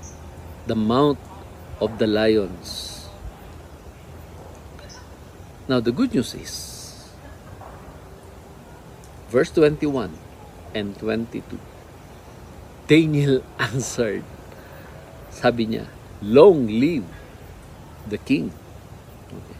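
A middle-aged man speaks calmly and expressively close to a microphone, with pauses between phrases.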